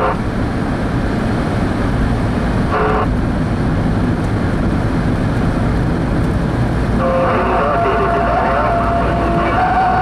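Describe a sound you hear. A car drives along a road with a steady low rumble of engine and tyres.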